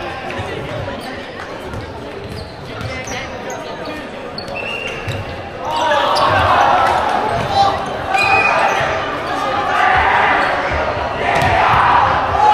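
A crowd of people chatters and shouts in a large echoing hall.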